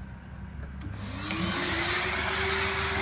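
Two cylinder vacuum cleaners switch on and their motors spin up to a loud whir.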